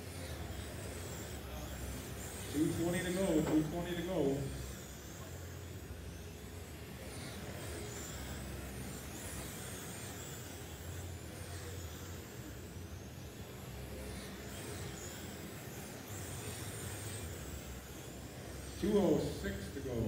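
Small electric model cars whine as they race around a track.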